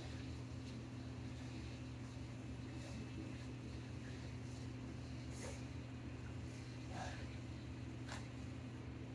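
Shoes step and shuffle softly on a floor.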